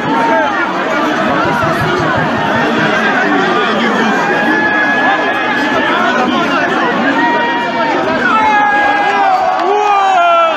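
A large crowd shouts and cheers loudly close by.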